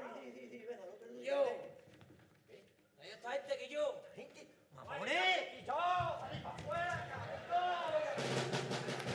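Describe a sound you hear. Men make high, gliding vocal sounds into a microphone on a stage.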